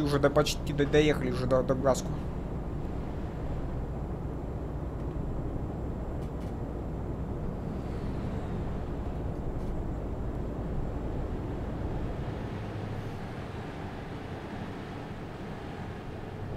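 A truck engine hums steadily as it drives along a highway.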